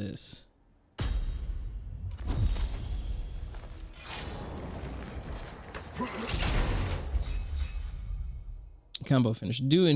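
A heavy lid grinds open with a rising rumble and shimmer.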